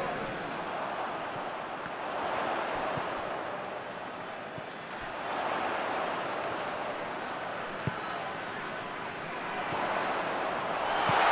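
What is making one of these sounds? A stadium crowd roars and murmurs.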